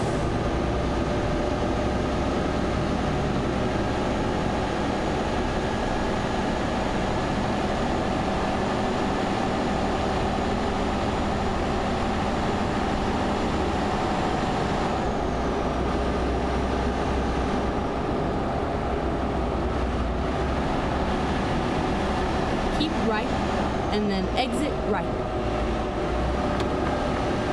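A truck engine hums steadily while driving on a highway.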